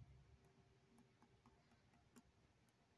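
A pen taps lightly on paper.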